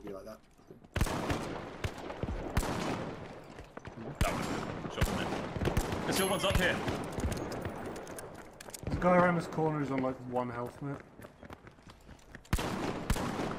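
Pistol shots bang sharply, one at a time.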